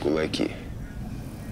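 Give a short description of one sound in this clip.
A man speaks softly close by.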